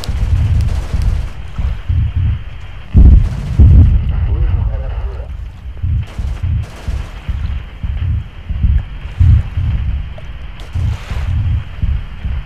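Naval guns fire in rapid, booming bursts.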